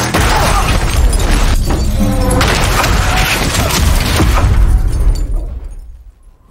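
A car crashes with a heavy, roaring rumble.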